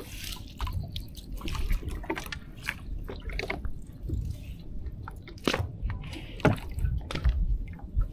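A wet net rustles and knocks against the side of a small boat.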